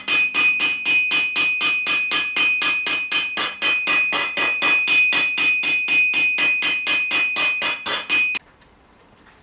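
A hammer beats rapidly and steadily on sheet metal over an anvil, ringing with each blow.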